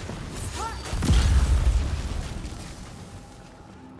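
A heavy explosion booms and rumbles, then slowly dies away.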